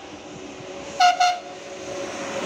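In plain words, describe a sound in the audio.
A high-speed train sounds two short horn blasts.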